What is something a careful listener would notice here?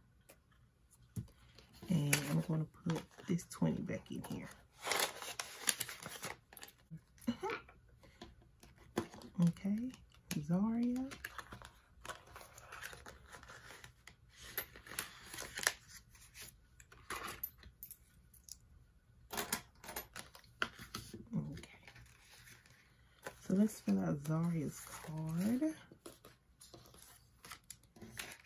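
Paper banknotes rustle and crinkle between fingers.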